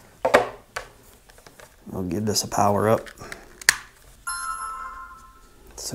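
Cables rustle and click as they are handled.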